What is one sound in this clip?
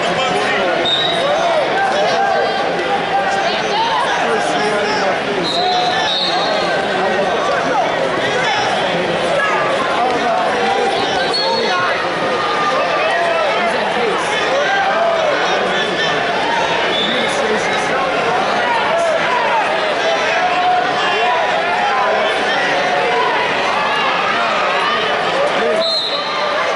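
Sneakers squeak sharply on a mat.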